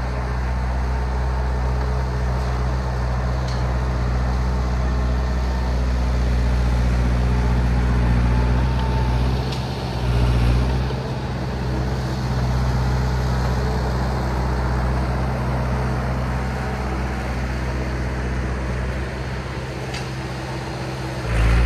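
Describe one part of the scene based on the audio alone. Bulldozer tracks clank and squeak over snow.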